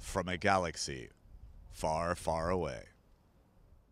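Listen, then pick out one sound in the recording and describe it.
A middle-aged man speaks calmly into a handheld microphone outdoors.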